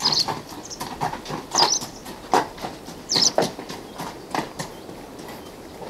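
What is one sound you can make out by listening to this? Horse hooves clop slowly on a path outdoors.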